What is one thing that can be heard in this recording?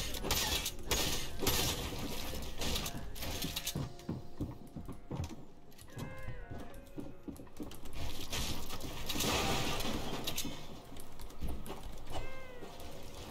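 Quick footsteps patter across wooden floors and steps.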